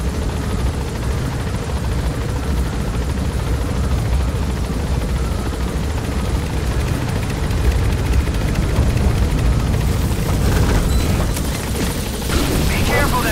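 A helicopter's rotor drones and thumps.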